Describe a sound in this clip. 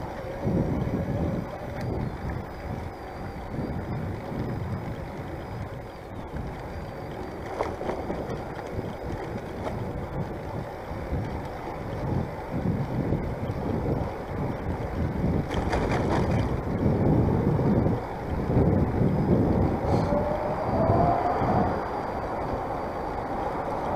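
Bicycle tyres roll along a path.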